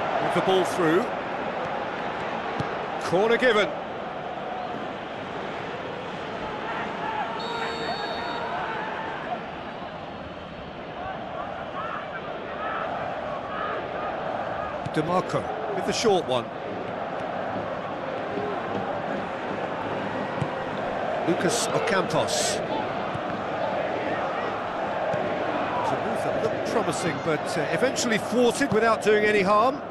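A stadium crowd murmurs and cheers in the background.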